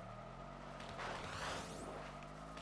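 An impact bursts with a sharp crack.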